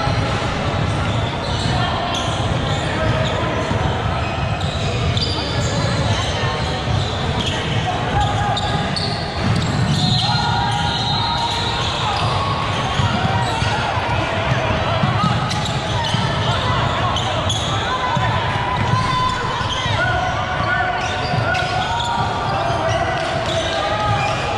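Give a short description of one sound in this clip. Spectators chatter in a large echoing gym.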